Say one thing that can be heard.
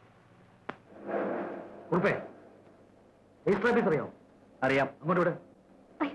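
A man speaks inside a car.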